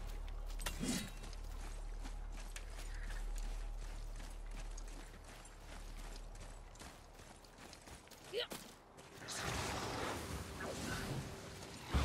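Heavy footsteps crunch on gravel and stone.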